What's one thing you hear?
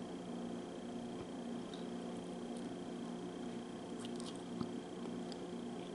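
A woman bites into a dry sausage close up.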